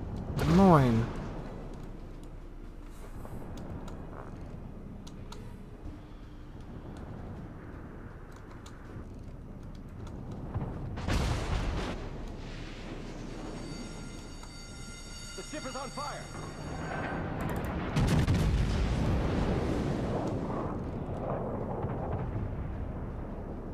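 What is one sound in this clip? Shells splash and explode in the water.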